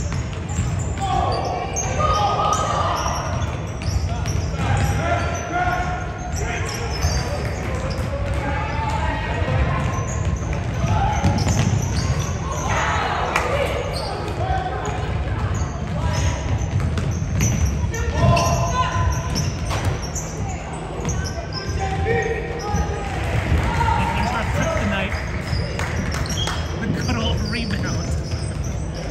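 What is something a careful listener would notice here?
Young girls call out to each other across the court.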